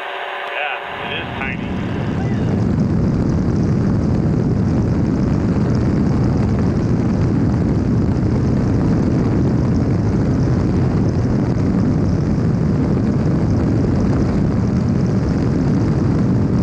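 Wind roars loudly past a microphone.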